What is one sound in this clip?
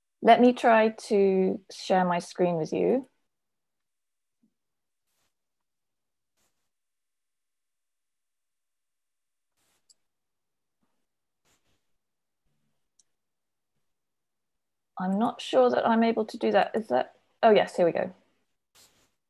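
A middle-aged woman speaks calmly over an online call, pausing between phrases.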